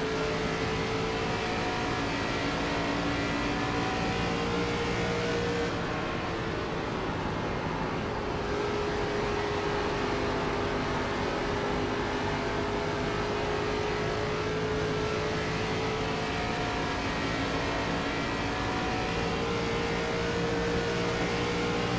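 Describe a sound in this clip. A race car engine roars steadily at high speed, its pitch dipping slightly through a turn and rising again.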